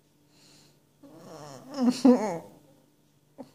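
A cat meows and chirps in short rising and falling calls.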